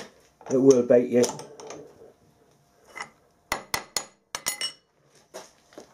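Metal parts click and clink as a hand tightens a collet.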